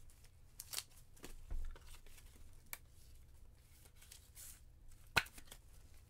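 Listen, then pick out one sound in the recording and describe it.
A card slides into a stiff plastic sleeve with a soft scrape.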